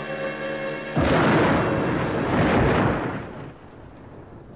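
Thunder rumbles and crashes loudly.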